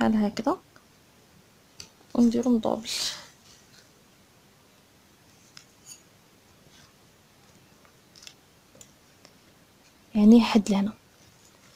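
Satin fabric rustles and slides over paper as hands fold it.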